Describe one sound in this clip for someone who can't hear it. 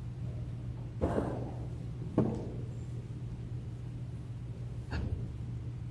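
Footsteps echo now and then in a large, reverberant hall.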